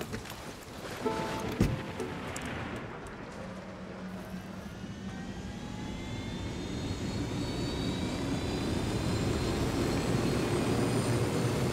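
A helicopter engine whines as it starts up and its rotor spins faster.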